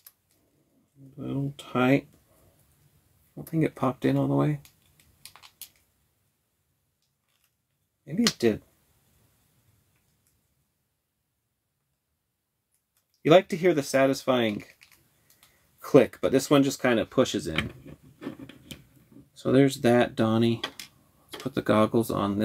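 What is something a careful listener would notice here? A man talks calmly and close by, in short bursts with pauses.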